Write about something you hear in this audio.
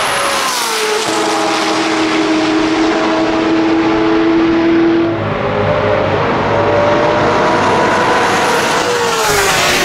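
A car engine whines at a high pitch as it accelerates and shifts gears.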